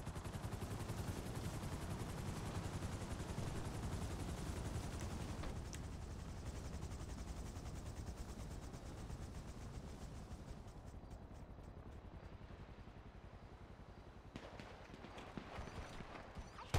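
A helicopter's rotor chops loudly and steadily, slowly growing quieter.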